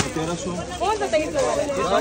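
Plastic packets rustle as they are handled.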